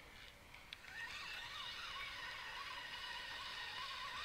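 A fishing reel whirs as a line is wound in.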